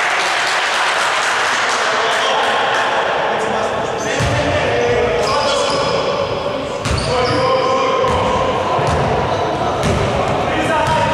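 Men shout to each other across the court.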